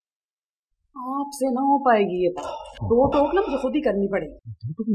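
A woman speaks, close by.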